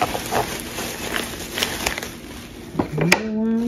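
Wooden pieces knock lightly against one another.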